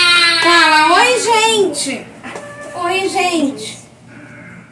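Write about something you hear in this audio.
A small child cries loudly close by.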